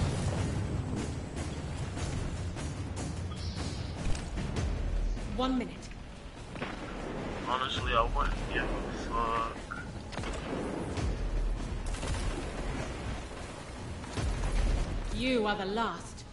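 Guns fire in rapid bursts with loud bangs.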